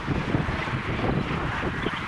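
Footsteps crunch on snow close by.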